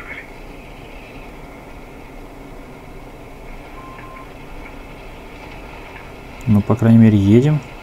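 A tank engine rumbles faintly through a small phone speaker.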